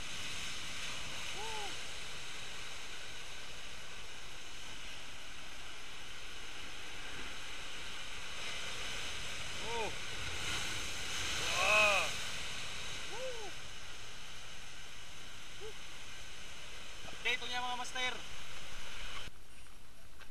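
Waves crash and surge against rocks.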